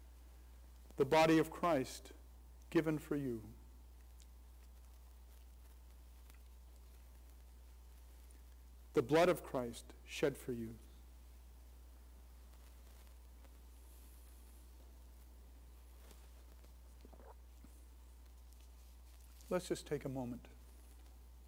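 An elderly man speaks calmly in short phrases.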